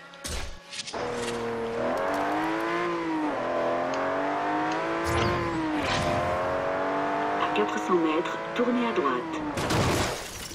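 A car engine revs and roars as it speeds up.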